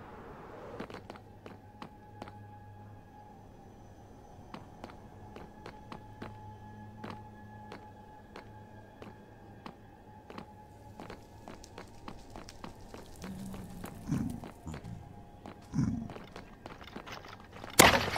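Footsteps tap quickly on a hard surface.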